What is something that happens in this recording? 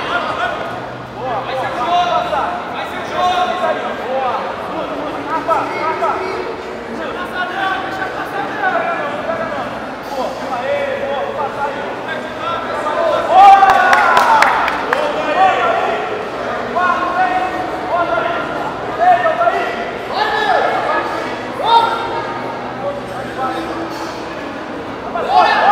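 A crowd of spectators shouts and calls out in an echoing hall.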